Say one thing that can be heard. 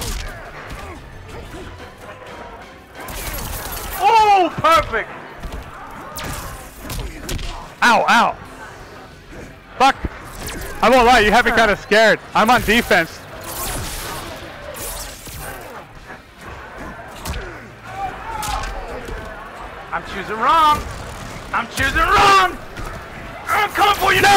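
Two young men talk and shout excitedly into microphones.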